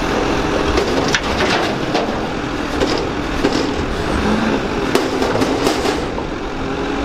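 Trash clatters and bangs as a bin is emptied into a garbage truck.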